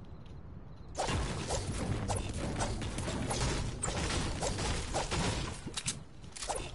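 A pickaxe strikes and breaks apart a wall with loud crashing thuds.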